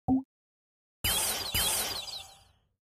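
A sparkling chime rings out twice.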